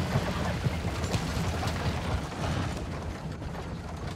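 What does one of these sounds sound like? Wooden wheels clatter across a wooden bridge.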